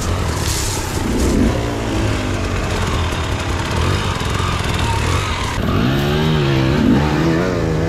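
A dirt bike engine idles and revs up close.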